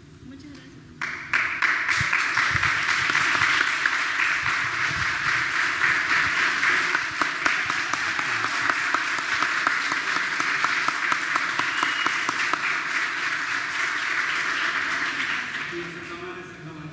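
A crowd claps in a large echoing hall.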